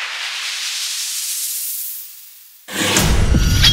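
A whooshing sound rises in pitch.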